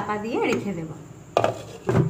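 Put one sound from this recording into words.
A lid clinks onto a pan.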